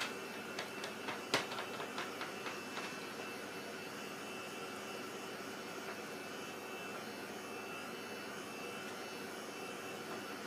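A heat gun blows with a steady whirring hiss.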